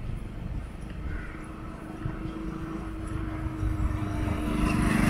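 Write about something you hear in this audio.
A motorbike engine hums as it approaches.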